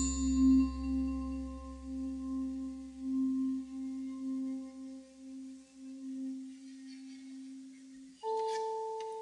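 A vibraphone rings with soft, sustained notes.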